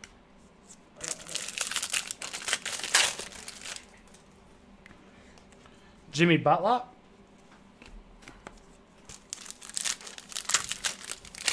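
Foil card packs crinkle and rustle in hands.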